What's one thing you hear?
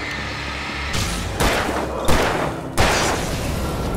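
A pistol fires several loud shots that echo in a large room.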